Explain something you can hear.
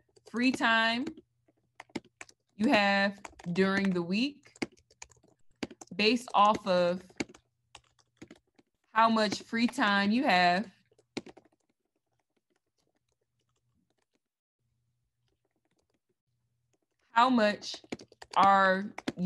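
A young woman talks with animation, close to the microphone, heard over an online call.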